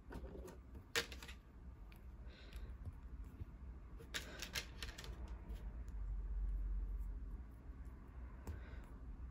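Small plastic pieces click and snap together.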